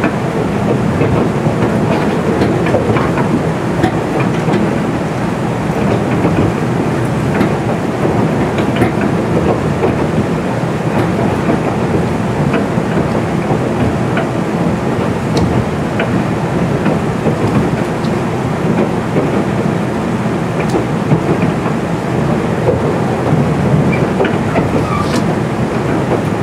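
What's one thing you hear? Train wheels click and clack over rail joints.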